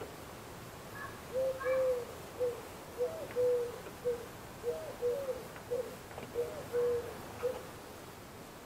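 A screw squeaks as a tool turns it.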